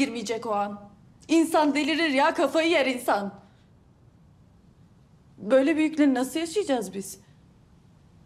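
A young woman speaks tensely at close range.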